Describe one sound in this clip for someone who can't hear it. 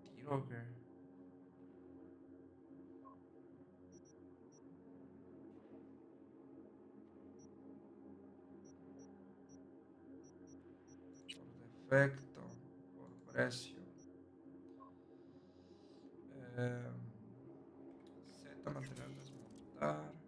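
A young man speaks now and then into a close microphone, in short bursts.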